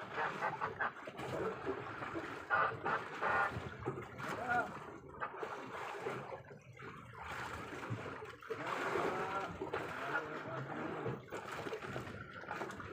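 Water laps against the side of a boat.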